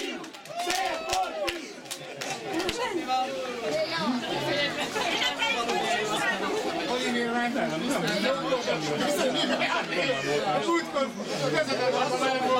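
Many young children chatter and call out excitedly outdoors nearby.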